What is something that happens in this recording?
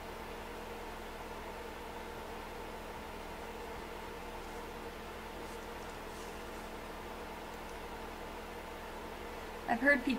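A small brush strokes softly across a painted surface.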